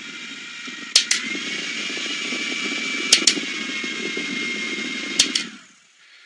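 A fan's button clicks a few times.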